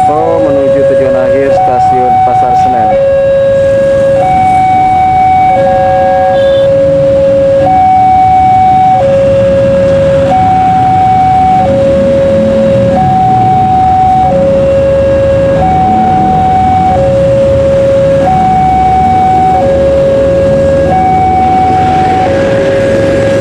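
A level crossing warning bell rings steadily in two alternating tones.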